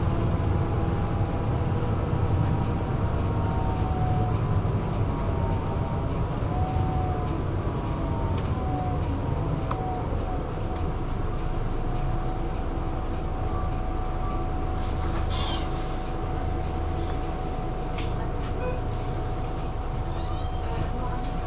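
A vehicle's engine hums steadily as it drives along.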